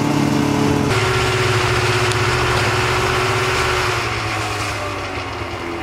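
A snowmobile drives away and fades into the distance.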